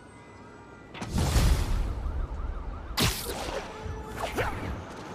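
A loud whoosh of rushing air sweeps past as a figure swings between buildings.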